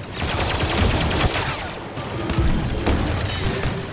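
Laser blasters fire in rapid bursts.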